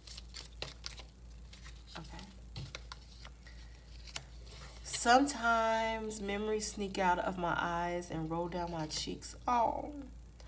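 Paper cards rustle and tap as they are shuffled and laid down.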